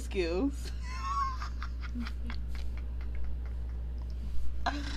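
A second young woman laughs nearby.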